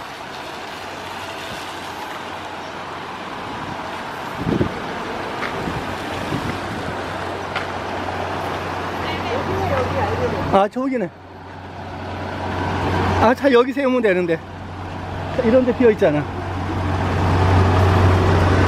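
A diesel tanker truck rumbles as it drives slowly closer.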